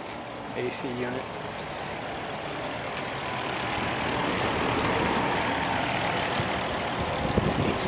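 An air conditioner unit hums and whirs steadily up close.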